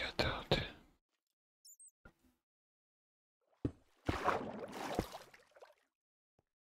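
A man talks briefly into a microphone.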